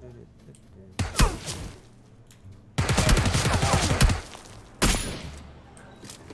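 Rapid bursts of gunfire crack loudly.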